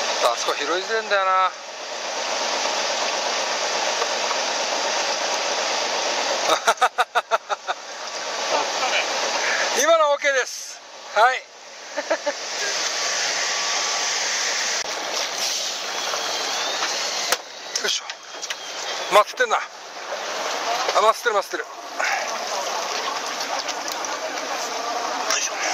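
Water washes against the hull of a fishing boat.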